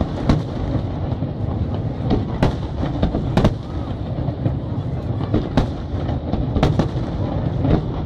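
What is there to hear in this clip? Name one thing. Fireworks crackle and rumble steadily.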